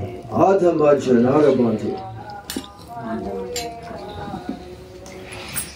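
An elderly man chants in a wavering, sung voice, close by.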